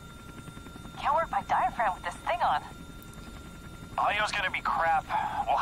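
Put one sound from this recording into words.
A young woman speaks quietly.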